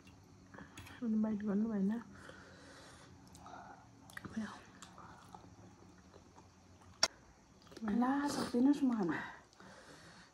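A young woman hums with pleasure while eating, close by.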